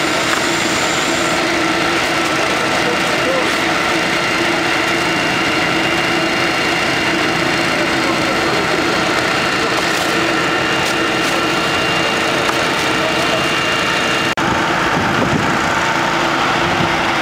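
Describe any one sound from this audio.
A fire engine's pump engine drones steadily nearby.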